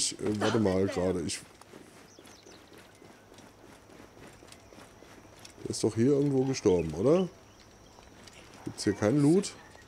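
Footsteps run across stone paving.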